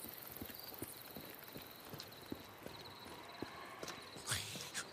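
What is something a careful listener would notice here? Footsteps crunch on pavement at a steady walking pace.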